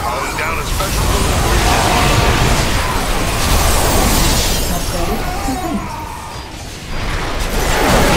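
Game laser beams fire and buzz.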